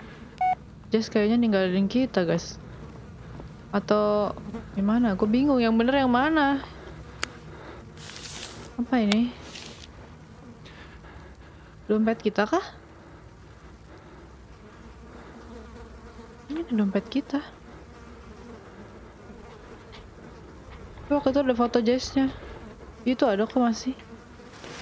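A young woman talks animatedly into a close microphone.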